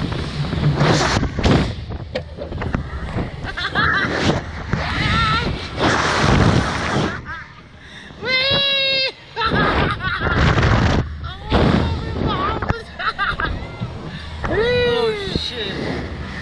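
Wind rushes loudly past.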